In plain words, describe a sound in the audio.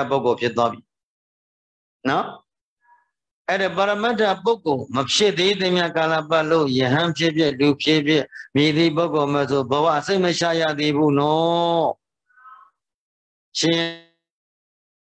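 An elderly man chants in a steady, sing-song voice close to a microphone, heard through an online call.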